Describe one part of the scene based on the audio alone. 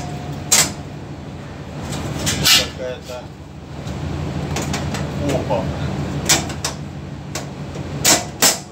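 Metal rails clank and scrape against a metal stove top.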